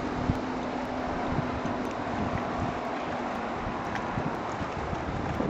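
Wind gusts and rumbles outdoors over open water.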